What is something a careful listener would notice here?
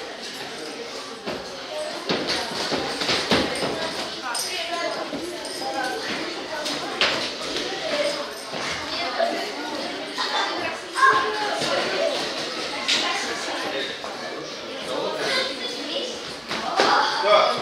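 Boxers' gloves thud against each other in quick punches.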